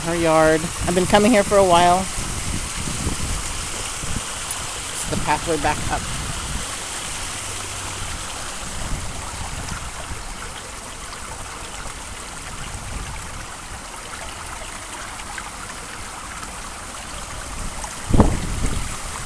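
Water trickles over stones in a shallow stream.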